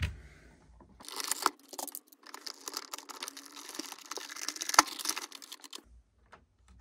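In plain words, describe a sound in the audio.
Plastic parts click and rattle as hands fit them together.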